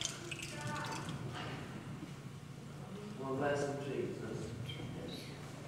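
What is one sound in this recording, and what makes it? A man speaks quietly in a large echoing hall.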